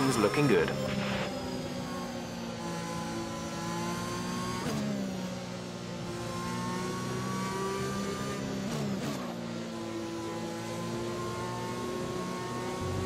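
A racing car engine hums steadily and shifts gears down.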